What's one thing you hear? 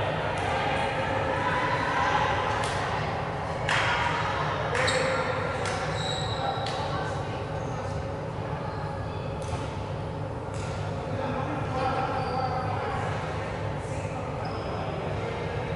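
Young men and women call out to each other across the hall.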